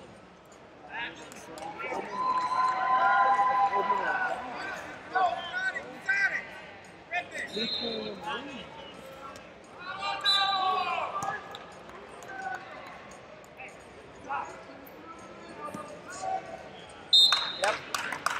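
Men shout loudly in a large echoing hall.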